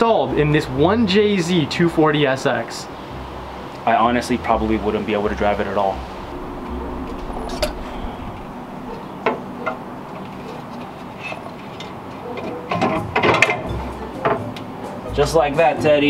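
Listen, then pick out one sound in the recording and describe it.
A young man talks casually, close by.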